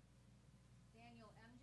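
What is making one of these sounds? A woman speaks briefly through a room microphone.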